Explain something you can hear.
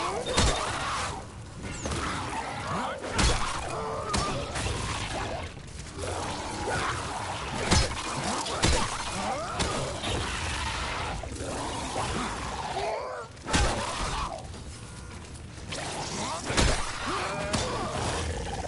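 Heavy blows thud and smack again and again.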